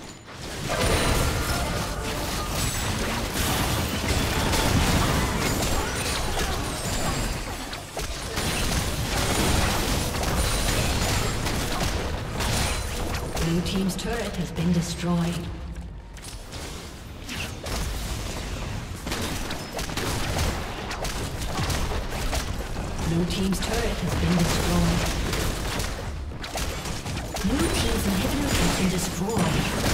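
Game spell effects blast and crackle in a busy fight.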